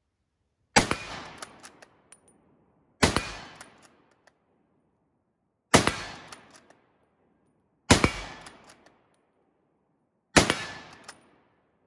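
A rifle fires loud shots, one at a time, each echoing off into the distance.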